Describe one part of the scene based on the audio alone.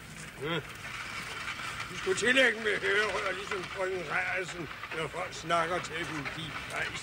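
An elderly man speaks calmly nearby.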